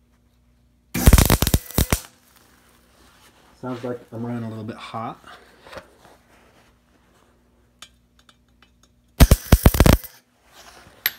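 A welding torch crackles and buzzes in short bursts.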